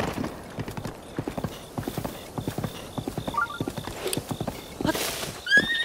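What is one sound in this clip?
Horse hooves thud rhythmically over soft ground.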